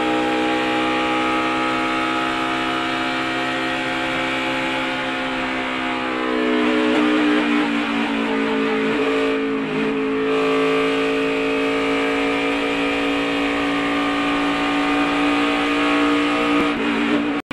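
Other race car engines drone just ahead.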